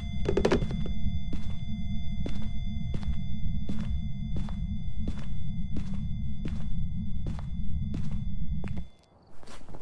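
Footsteps walk at a steady, quick pace.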